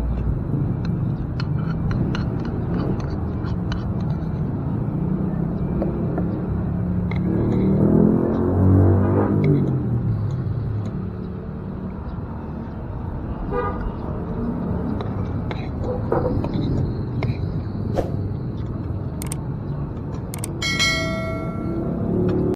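A spoon and fork clink against a plastic bowl.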